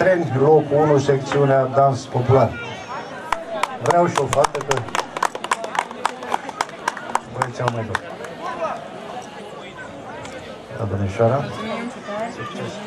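An elderly man speaks calmly through a loudspeaker microphone.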